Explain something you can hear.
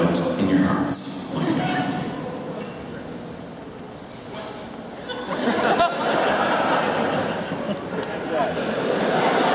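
An electric guitar plays loudly through an amplifier.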